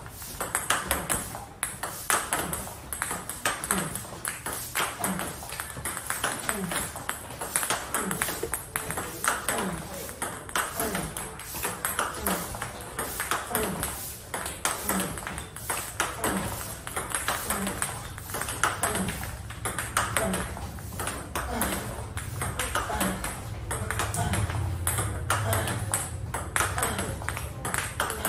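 A table tennis ball clicks back and forth off paddles.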